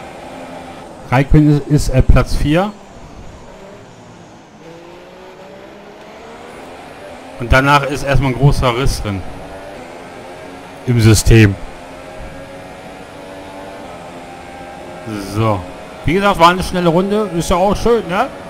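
A racing car engine whines at high revs, rising and dropping in pitch as gears change.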